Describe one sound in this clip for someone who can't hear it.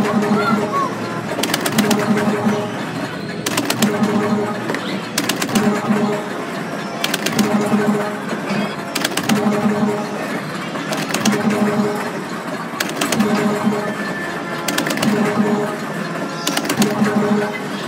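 An arcade machine plays a short electronic tune that repeats over and over.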